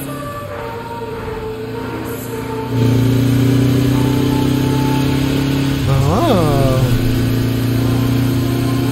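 A motorcycle engine hums steadily and briefly revs up.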